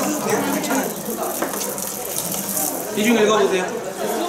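Liquid pours from a hose into a plastic bucket.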